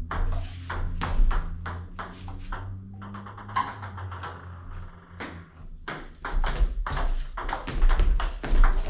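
A table tennis ball bounces on a table.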